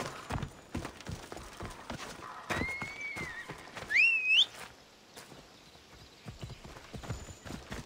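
Footsteps thud on wooden boards and then on a dirt path.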